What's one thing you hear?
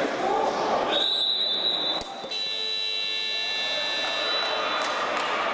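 A referee's whistle blows sharply, then again in a long shrill blast.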